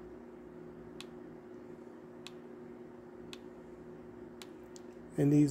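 A small plastic button clicks several times, slowly.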